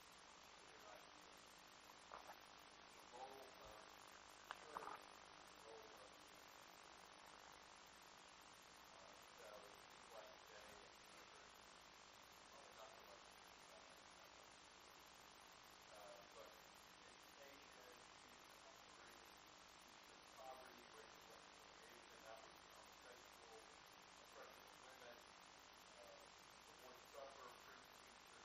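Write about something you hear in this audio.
A middle-aged man speaks calmly through a lapel microphone.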